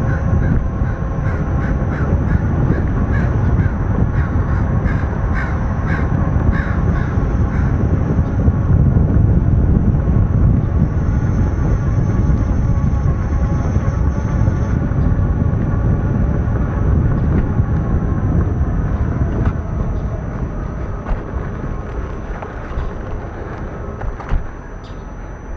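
A tyre rolls over pavement with a low rumble.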